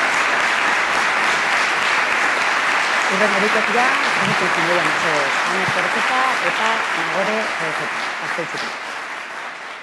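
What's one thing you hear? Dancers' shoes tap on a wooden stage.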